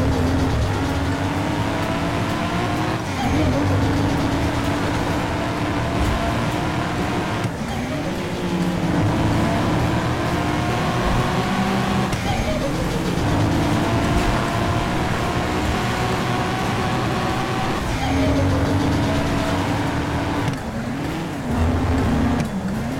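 A pickup truck's engine roars at high speed, dropping briefly as each gear shifts and climbing again.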